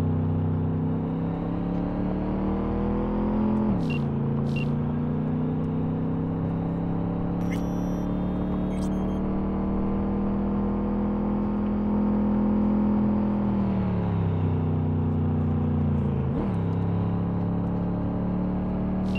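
A car engine hums steadily, its pitch dropping with each gear change.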